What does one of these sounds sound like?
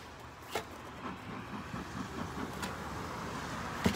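A bee smoker puffs smoke with soft hissing bursts.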